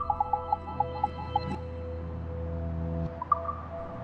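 Short musical chimes ring out.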